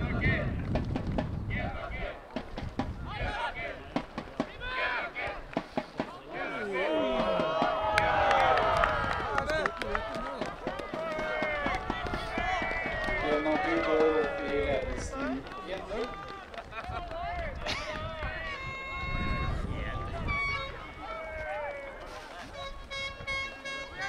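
Men shout and call out to each other outdoors, some way off.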